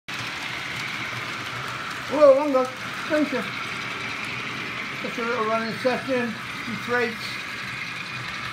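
A small model train hums and clicks along its track.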